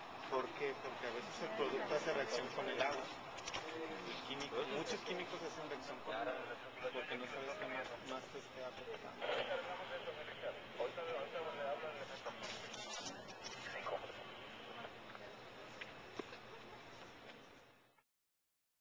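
A cloth bandage rustles softly as it is wrapped around an arm.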